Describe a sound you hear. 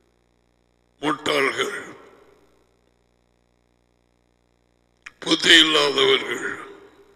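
A man speaks emphatically into a close headset microphone, in short bursts with pauses.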